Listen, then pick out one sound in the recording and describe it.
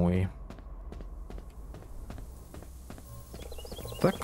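Footsteps patter on pavement at a steady pace.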